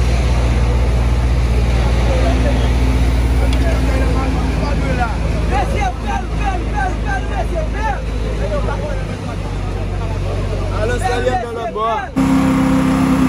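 A hydraulic excavator's diesel engine runs with a low rumble.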